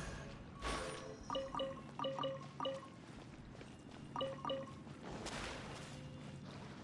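A whooshing sound effect sweeps past.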